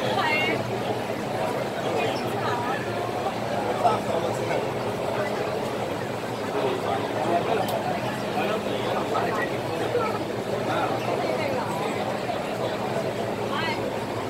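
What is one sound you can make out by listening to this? A large crowd of men and women chatters and murmurs all around in an echoing hall.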